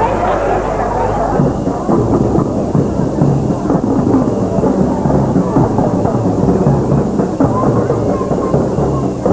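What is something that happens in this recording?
A crowd cheers and chatters outdoors.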